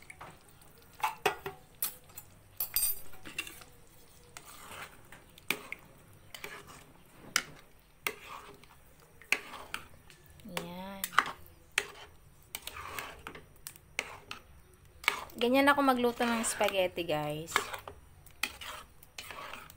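A spoon scrapes and clinks against a pot while stirring.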